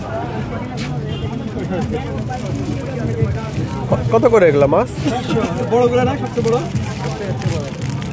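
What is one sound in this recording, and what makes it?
Plastic packets rustle as a hand handles them.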